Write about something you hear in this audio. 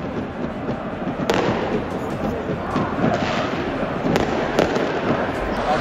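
Fireworks bang and crackle sharply.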